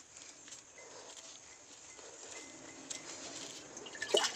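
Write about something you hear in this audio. A plastic tub scrapes and knocks as a hand reaches into it.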